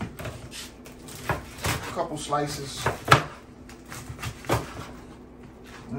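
A knife taps on a cutting board as food is sliced.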